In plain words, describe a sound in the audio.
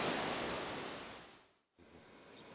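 Waves wash gently on a shore.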